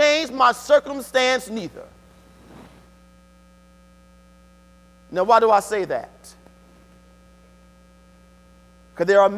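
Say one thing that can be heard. A man preaches with animation through a microphone, with long pauses, in a large echoing hall.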